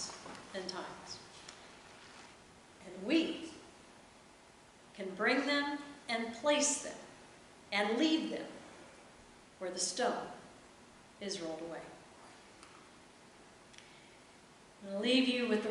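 A woman speaks calmly into a microphone in an echoing room, pausing between phrases.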